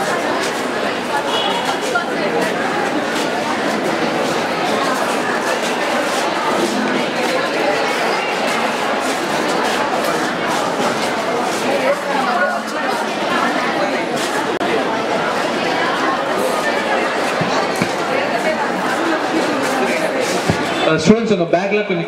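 A crowd of people chatters loudly all around.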